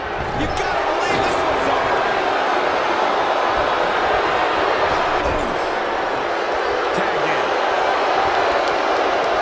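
Punches thud during a brawl.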